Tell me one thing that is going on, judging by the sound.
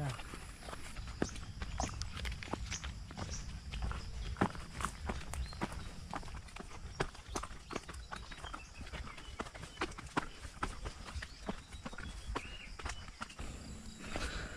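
Footsteps crunch on a stony path.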